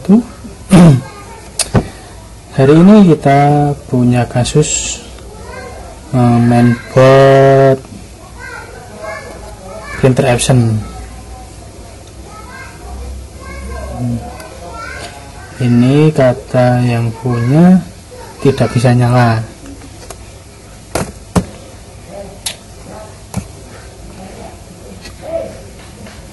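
Small plastic circuit boards tap and click as hands handle them.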